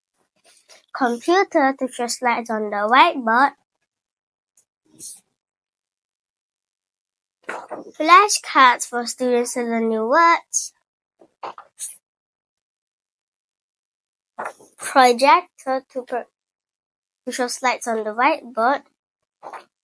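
A young girl speaks clearly and calmly into a close microphone, in short phrases with pauses.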